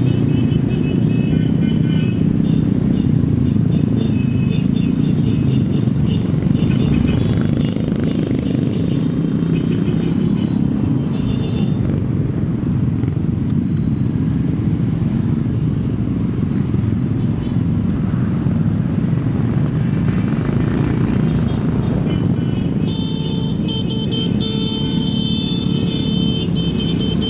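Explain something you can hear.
Many motorcycle engines drone together nearby.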